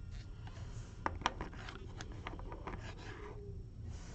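Hard plastic card holders tap and click against each other.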